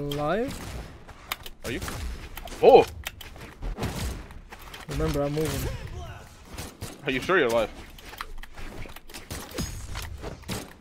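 Fighting game hits and whooshes crack in quick bursts.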